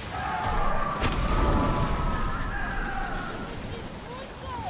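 Thunder cracks and rumbles.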